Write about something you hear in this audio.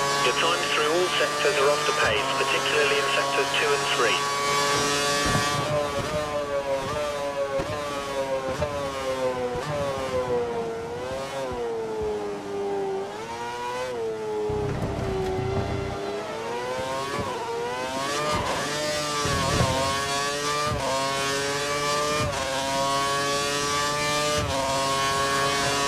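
A racing car engine screams at high revs, dropping in pitch through corners and rising again on the straights.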